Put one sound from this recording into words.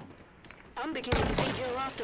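An energy weapon fires with a crackling zap.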